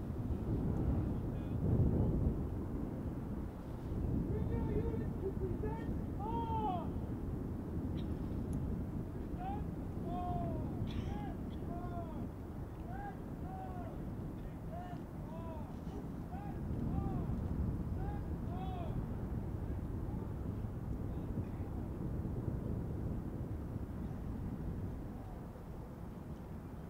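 Wind blows and rumbles outdoors.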